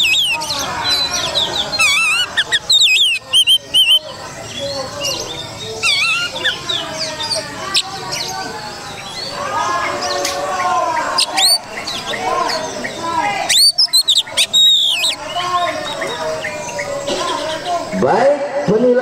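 A songbird sings loud, varied whistling phrases close by.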